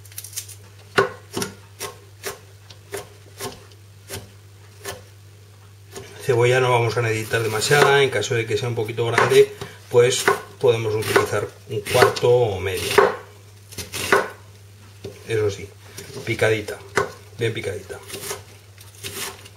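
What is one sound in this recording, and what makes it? A knife chops steadily against a cutting board.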